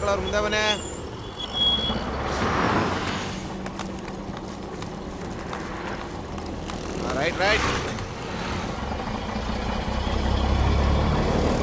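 A bus engine idles and pulls away.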